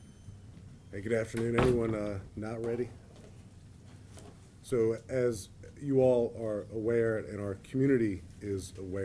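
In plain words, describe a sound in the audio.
A middle-aged man speaks calmly into microphones.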